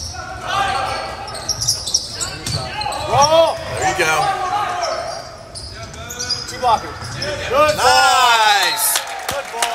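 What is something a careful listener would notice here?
A volleyball is struck with loud smacks.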